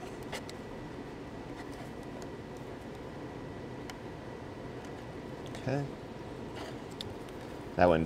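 Small plastic wire connectors click and rattle in hands.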